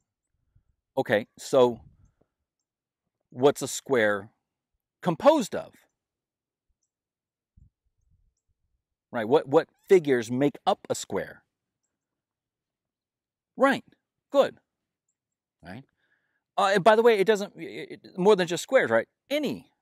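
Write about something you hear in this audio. A middle-aged man speaks calmly and clearly into a clip-on microphone, with pauses.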